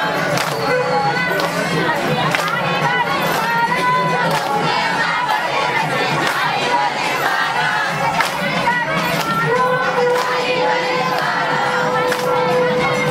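A group of women sing together loudly.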